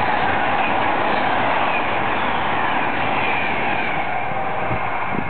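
A train's wheels squeal against the rails.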